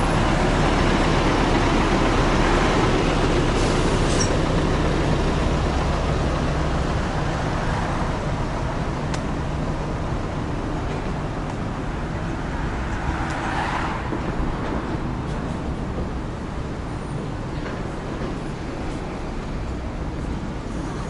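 Car traffic rumbles steadily past on a busy road outdoors.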